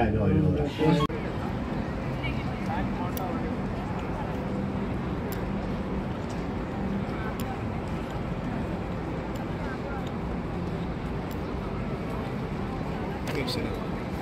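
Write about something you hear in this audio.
A crowd murmurs faintly outdoors.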